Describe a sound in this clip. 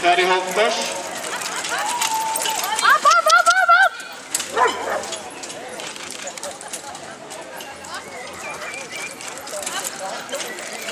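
A carriage's wheels rumble over soft ground.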